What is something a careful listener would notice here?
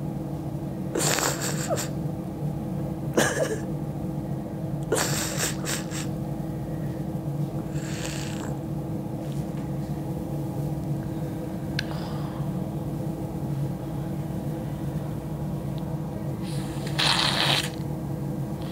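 A woman breathes out cigarette smoke in soft, breathy puffs.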